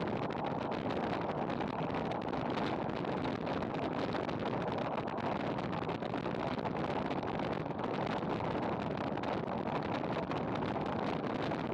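A bicycle's tyres hum on the road.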